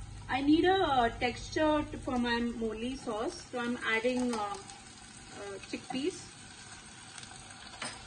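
Chickpeas are spooned from a can into a saucepan.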